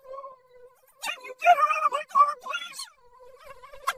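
A man talks with animation, close by.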